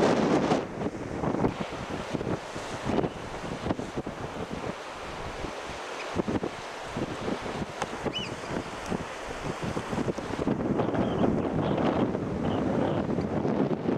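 Sea waves crash and wash over rocks outdoors.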